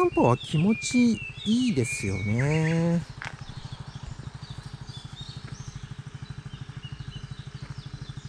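A motorbike engine putters steadily nearby.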